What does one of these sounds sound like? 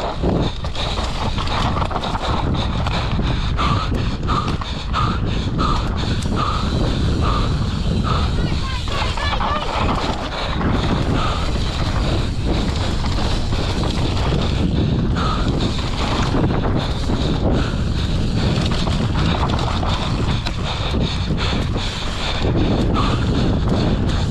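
Bike tyres rumble and crunch over a dry dirt trail.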